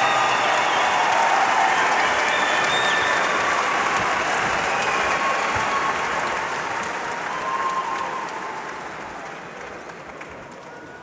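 A large crowd cheers and applauds in a big echoing arena.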